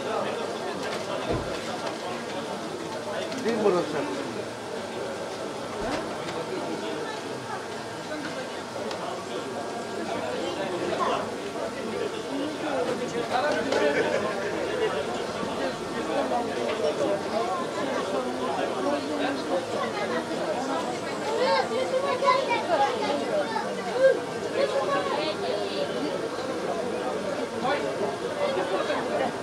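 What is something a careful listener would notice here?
A man talks casually, heard through a small loudspeaker.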